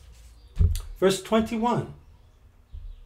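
A middle-aged man speaks briefly and calmly, close by.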